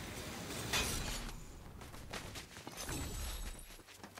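Footsteps crunch through snow.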